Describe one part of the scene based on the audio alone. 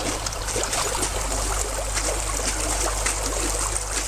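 Water sloshes as a person moves in a hole in the ice.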